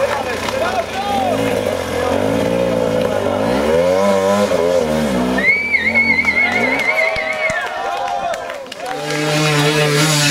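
A crowd cheers and shouts nearby.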